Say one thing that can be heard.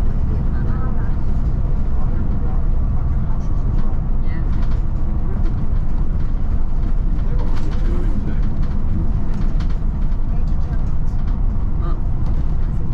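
Wind rumbles steadily against the vehicle.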